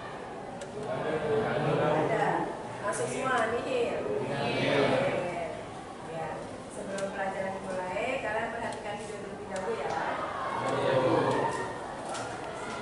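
A woman speaks clearly to a group in a room.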